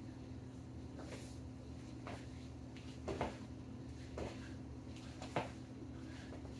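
Sneakers thud and scuff on a hard floor as a man jogs in place.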